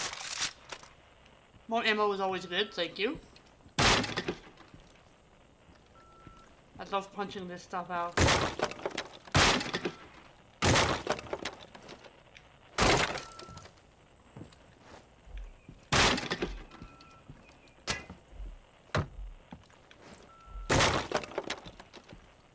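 A rifle fires loud single shots again and again.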